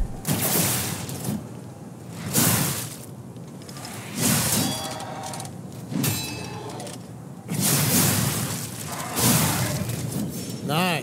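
Swords clash and slash in loud bursts.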